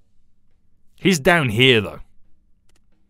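A man speaks a short, lively phrase close by.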